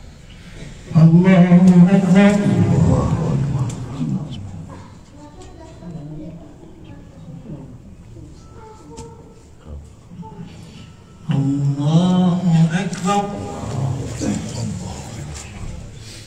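A man chants a long drawn-out call loudly nearby.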